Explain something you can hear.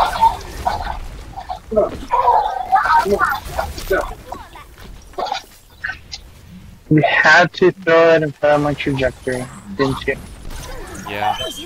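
A gun fires repeated shots in quick bursts.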